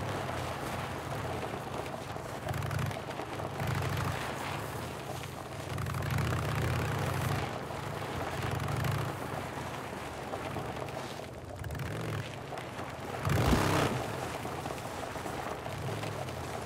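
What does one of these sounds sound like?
Tyres crunch over snow and gravel.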